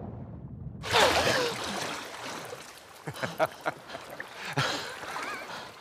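A young girl gasps for breath and laughs.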